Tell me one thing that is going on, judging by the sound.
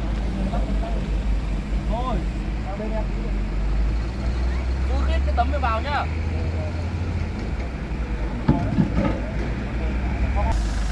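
A crane's engine rumbles low and steadily.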